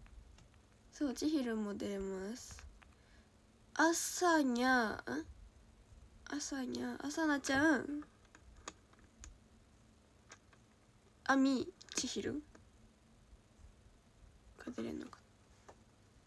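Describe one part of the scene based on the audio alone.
A young woman speaks softly and casually into a nearby microphone, with pauses.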